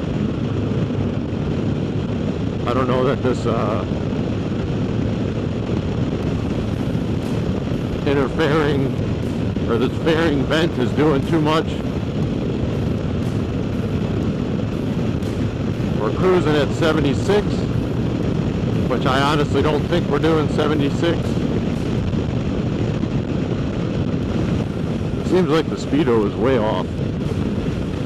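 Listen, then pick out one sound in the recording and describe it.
A motorcycle engine rumbles steadily.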